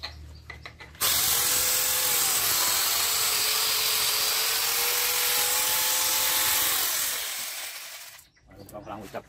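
A cordless electric chainsaw whines as it cuts through a tree trunk.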